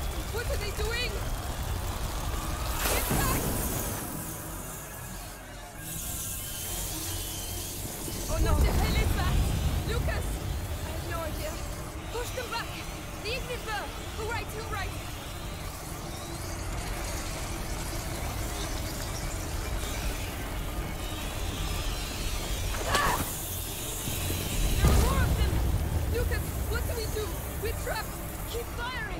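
A torch flame crackles and flutters.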